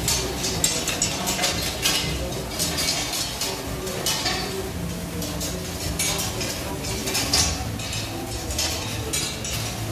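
Food sizzles on a hot griddle.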